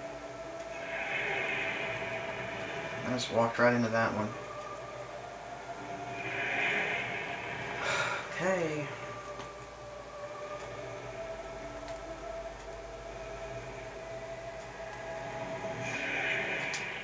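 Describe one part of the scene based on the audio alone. Large wings beat with slow whooshing swells.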